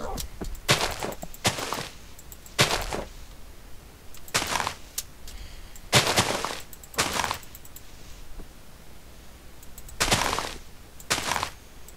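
Footsteps crunch on grass at a walking pace.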